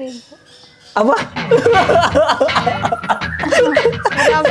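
A young woman laughs loudly and close by.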